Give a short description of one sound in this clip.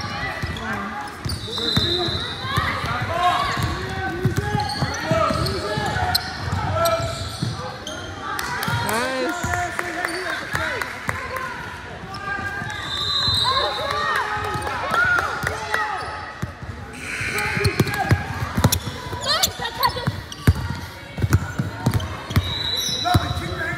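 A basketball bounces repeatedly on a hard floor in a large echoing gym.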